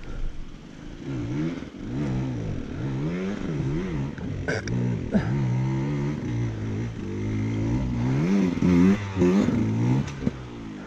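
A dirt bike engine revs and grows louder as it approaches.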